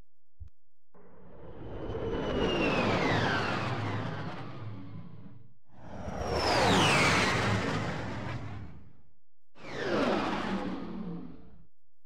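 A spaceship whooshes past several times, swelling and fading.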